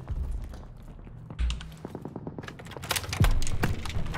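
A window creaks open.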